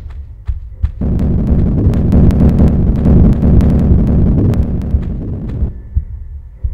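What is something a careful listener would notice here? Lava rumbles low and steadily.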